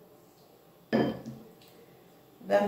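A spatula knocks against a glass bowl.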